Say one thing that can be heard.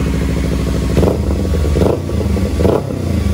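A motorcycle engine revs in short bursts.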